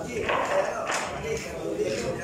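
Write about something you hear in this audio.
A cue ball clicks sharply against another ball.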